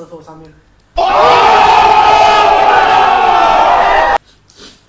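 A crowd shouts loudly outdoors.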